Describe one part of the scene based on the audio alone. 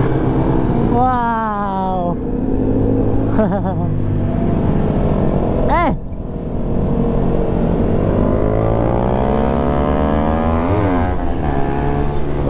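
Other motorcycles rev nearby, their pitch rising and falling.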